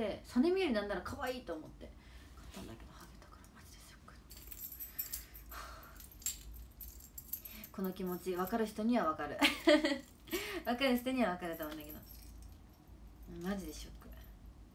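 A young woman speaks casually, close to a phone's microphone.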